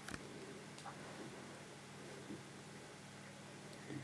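Air bubbles gurgle and pop softly in water.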